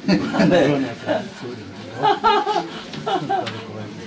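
Several people laugh together in a small room.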